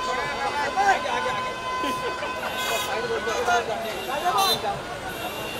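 A crowd of young people cheers and shouts excitedly outdoors.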